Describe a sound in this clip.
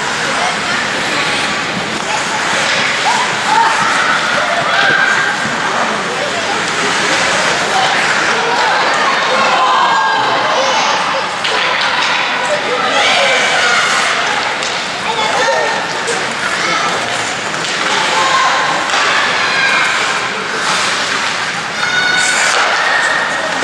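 Young men shout to each other across an echoing rink.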